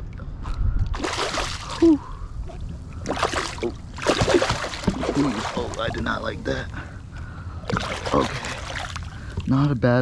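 A fish splashes and thrashes loudly at the water's surface.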